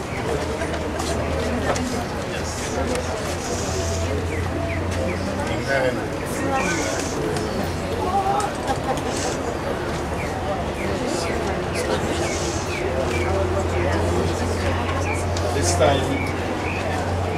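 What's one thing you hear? A crowd of men and women murmurs and talks quietly nearby.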